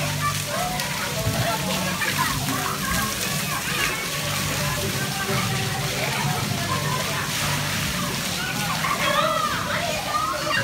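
Water sprays and splashes steadily onto the ground.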